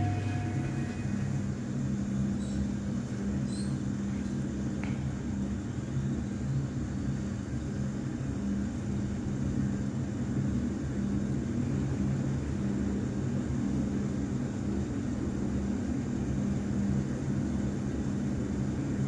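A lift hums steadily as it rises.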